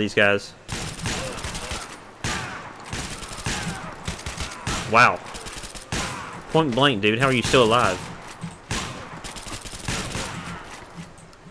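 A shotgun fires in loud blasts.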